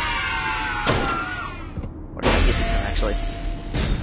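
A plastic capsule clatters out of a toy vending machine.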